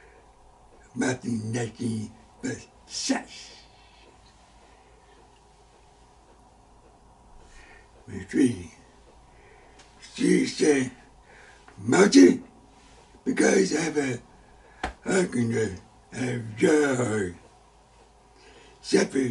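An elderly man speaks with emphasis, close to a microphone, with pauses between phrases.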